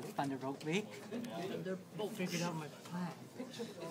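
Playing cards slide and tap softly on a mat.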